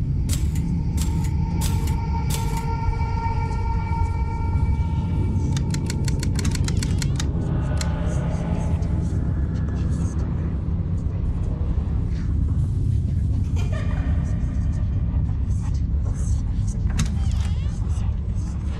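Footsteps patter quickly across a wooden floor.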